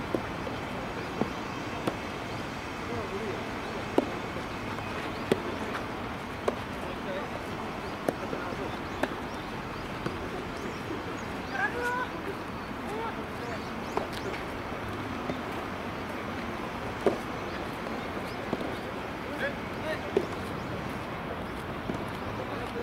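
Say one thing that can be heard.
Rackets strike tennis balls with sharp pops outdoors.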